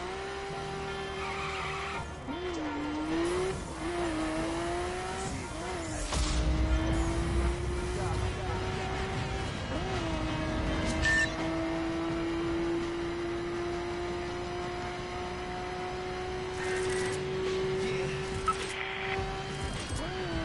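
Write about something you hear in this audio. A sports car engine revs hard and climbs through the gears.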